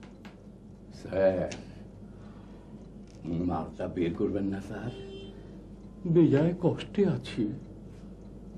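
A middle-aged man speaks in a low, emotional voice close by.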